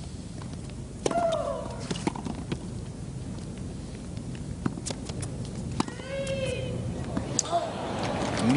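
A tennis ball is struck hard with a racket, back and forth.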